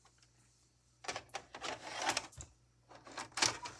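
A videotape slides into a player and clunks into place.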